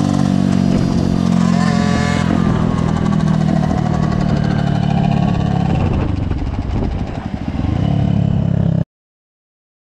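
A motorcycle engine roars loudly up close, revving up and down.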